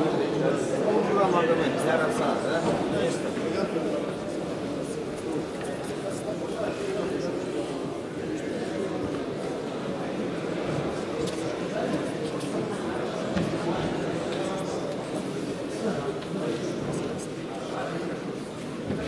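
Many voices of men chatter in a large echoing hall.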